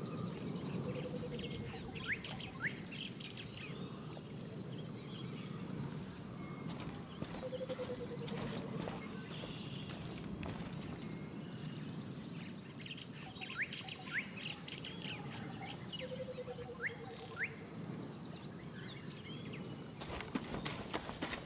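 Wind blows steadily through tall grass outdoors.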